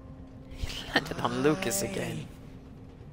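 A young man asks a short question.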